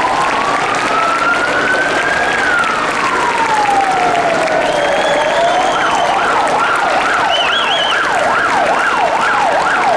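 A large outdoor crowd applauds.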